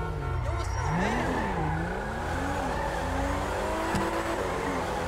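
Car tyres screech on the road while drifting.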